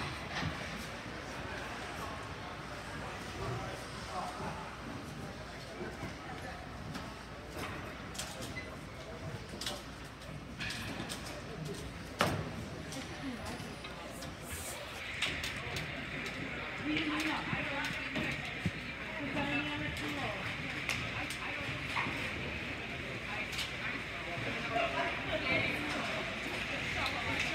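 Hockey sticks tap on the ice.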